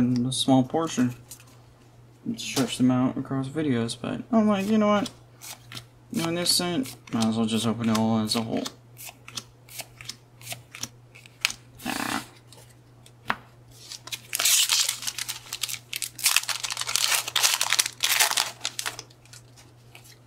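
Playing cards flick and slide against each other.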